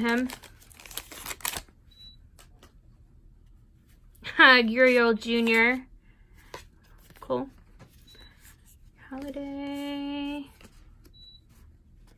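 Trading cards rustle and slap softly as they are sorted.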